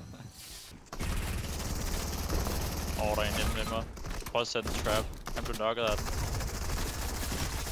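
Gunfire crackles rapidly in a game.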